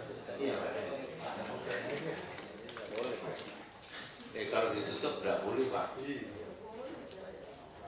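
A man speaks calmly into a microphone, heard through loudspeakers in a room with some echo.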